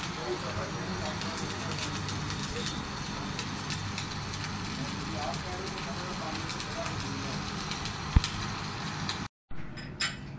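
An arc welder crackles and hisses steadily.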